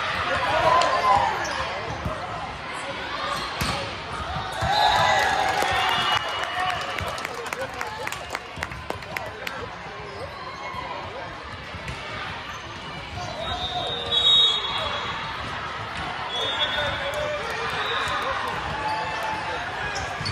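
Many voices of players and spectators shout and chatter across a large echoing hall.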